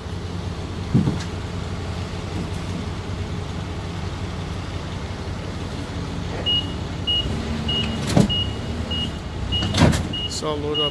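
A heavy load thuds down onto a truck bed.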